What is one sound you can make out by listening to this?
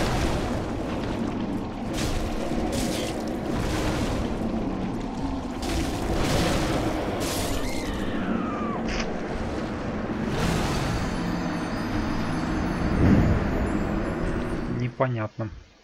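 A monstrous creature roars and growls loudly.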